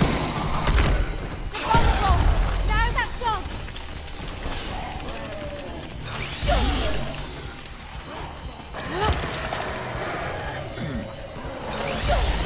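Monsters snarl and growl.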